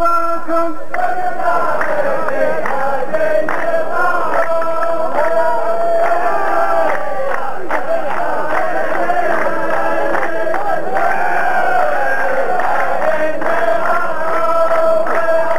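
A large group of men sings a chant together in chorus.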